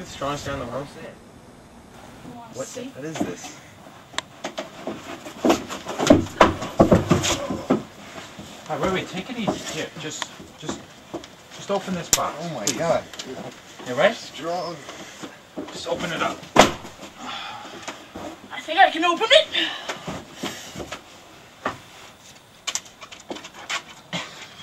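Young men talk and shout with excitement nearby.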